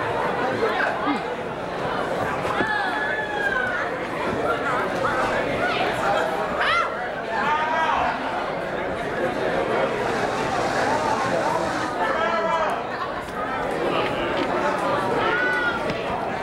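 An audience cheers and whoops with many voices at once.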